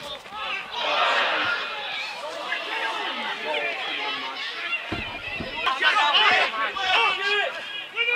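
Men shout and call out across an outdoor football pitch.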